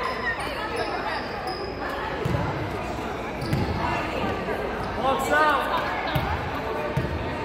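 Young men and women talk and call out in a large echoing hall.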